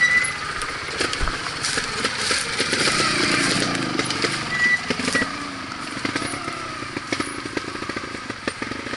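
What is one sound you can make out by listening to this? Tyres knock and crunch over rocks and dirt.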